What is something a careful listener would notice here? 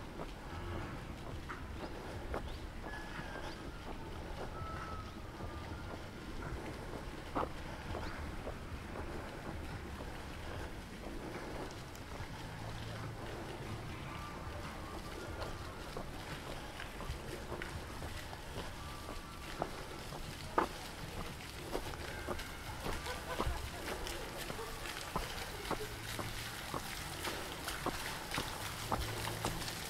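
Footsteps walk steadily on a paved path outdoors.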